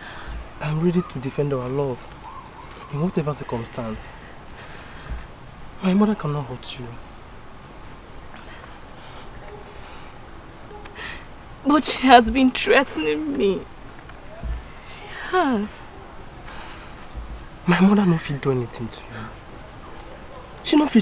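A man speaks softly and earnestly, close by.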